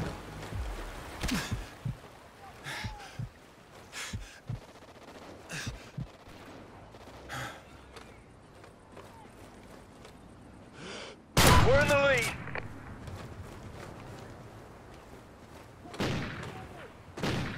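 Footsteps thud on dirt and grass.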